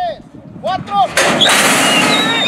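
A starting gate clangs open.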